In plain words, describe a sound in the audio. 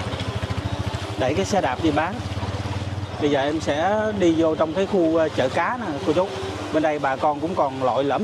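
A motorbike engine runs close by.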